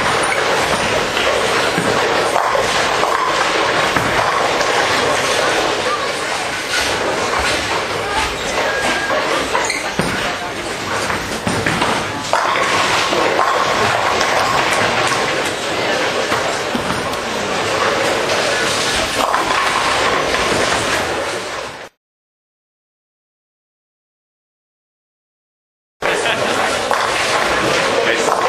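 A large echoing hall rings with bowling noise.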